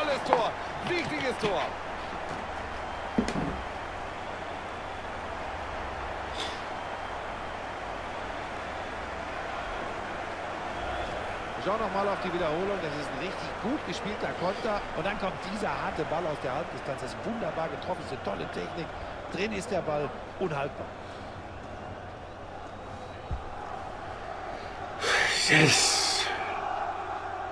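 A large stadium crowd murmurs steadily.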